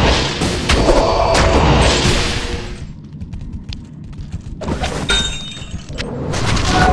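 Magic spells crackle and whoosh in bursts.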